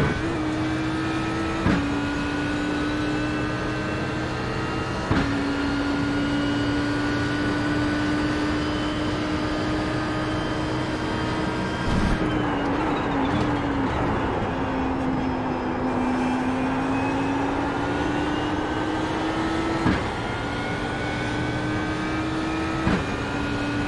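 A racing car's engine roars steadily at high revs.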